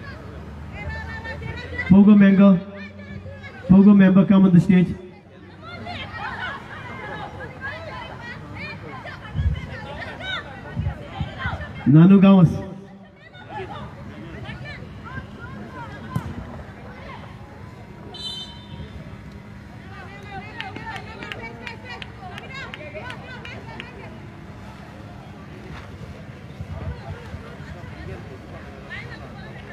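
Young players and onlookers shout and call out across an open outdoor field.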